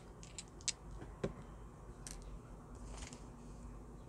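Small dice clatter and roll across a cloth-covered table.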